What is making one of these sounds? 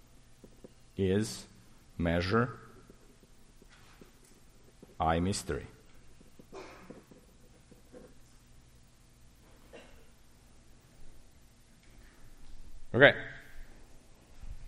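A man speaks in short bursts through a microphone in an echoing hall.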